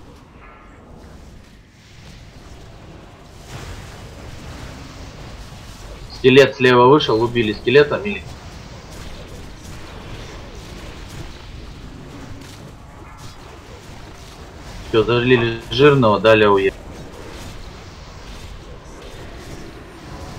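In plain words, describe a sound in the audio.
Spells and weapon strikes clash in a fantasy battle.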